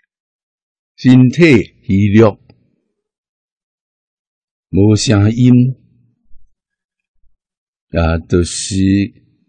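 An elderly man speaks slowly and calmly, close to a microphone, with long pauses.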